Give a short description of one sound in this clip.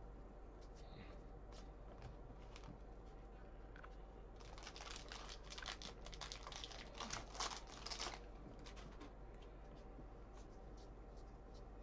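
Trading cards rustle and flick as they are shuffled through by hand.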